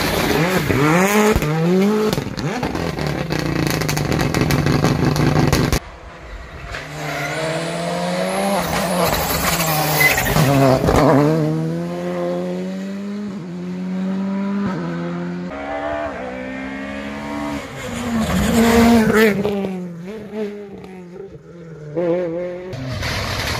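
Engines crackle and pop as rally cars shift gears.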